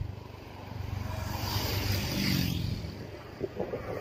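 A car rushes past close by.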